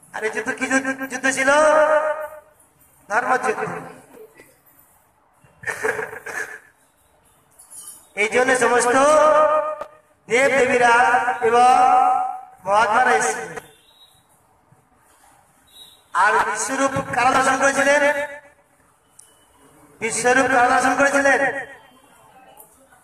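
A man sings a chant through a microphone, in phrases with pauses between them.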